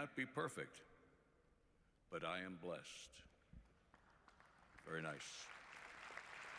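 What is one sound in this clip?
An elderly man speaks slowly and solemnly through a microphone, with pauses.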